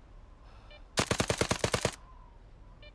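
A gun fires a short rapid burst.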